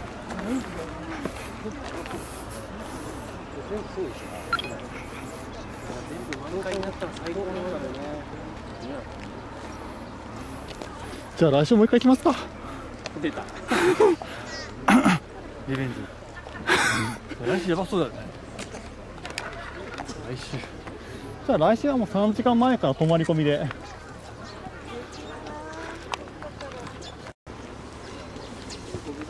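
A crowd of people chatters faintly in the distance.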